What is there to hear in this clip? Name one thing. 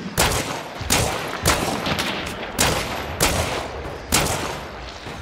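A gun fires loud shots at a steady pace, each followed by a short echo outdoors.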